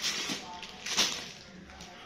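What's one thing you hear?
Fabric rustles as hands handle it.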